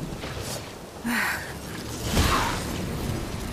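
A crackling magical blast bursts out.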